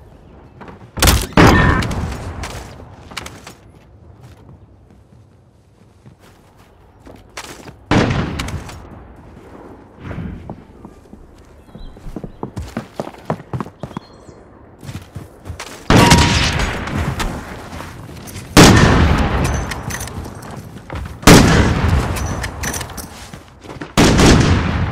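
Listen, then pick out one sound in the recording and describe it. A rifle fires single loud shots that boom and echo.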